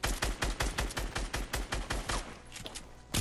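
Rapid gunshots fire in a quick, even burst.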